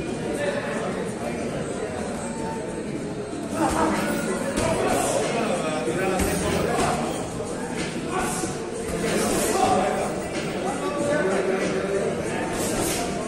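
Men talk and shout nearby.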